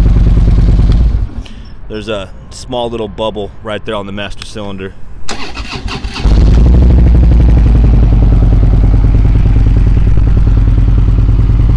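A motorcycle engine idles with a deep, steady rumble.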